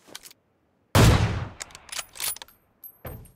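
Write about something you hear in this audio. A game character lands with a heavy thud after a jump.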